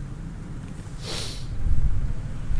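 A page of a book rustles as it is turned.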